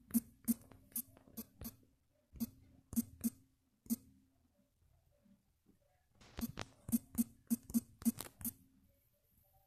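Phone keyboard taps click quickly in bursts.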